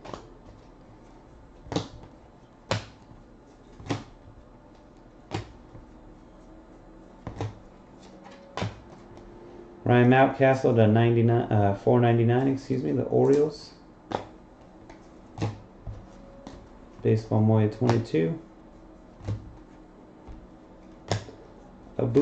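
Trading cards snap and click as they are flipped through by hand.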